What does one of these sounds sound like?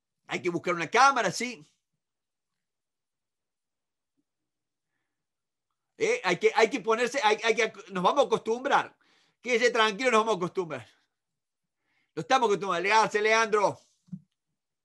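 A middle-aged man speaks with animation into a microphone, heard up close.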